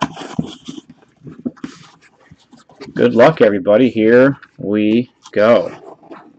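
Cardboard flaps rustle and scrape as a box is opened.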